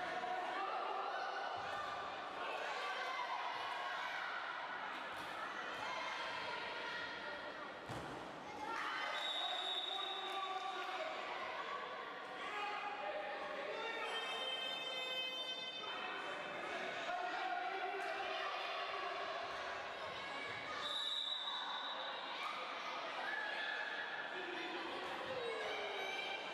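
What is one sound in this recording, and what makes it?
Young girls shout and cheer throughout a large echoing hall.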